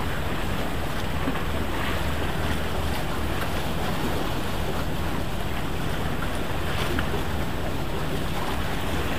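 Small waves lap and splash against concrete blocks.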